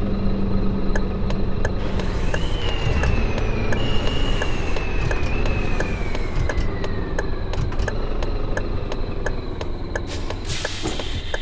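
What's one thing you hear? A turn signal ticks at an even pace.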